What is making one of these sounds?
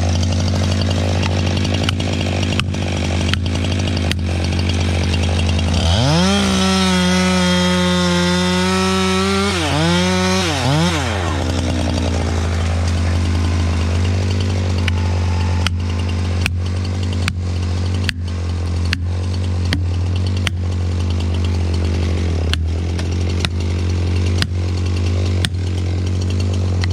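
A chainsaw idles with a low steady rumble nearby.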